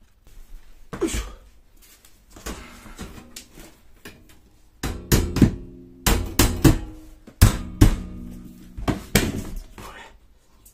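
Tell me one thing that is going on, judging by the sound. Wire shelf panels rattle against metal poles.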